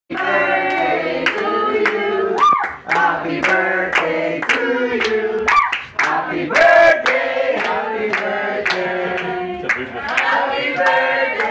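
A group of people clap their hands in a steady rhythm.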